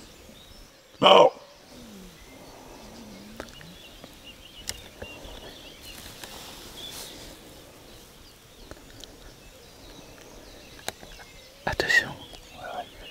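A deer barks loudly nearby.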